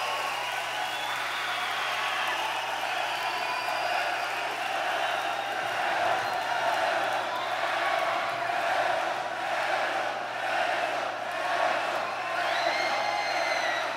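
A live rock band plays loudly in a large echoing hall.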